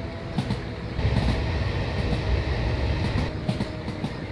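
A train rumbles louder and hollower while crossing a bridge.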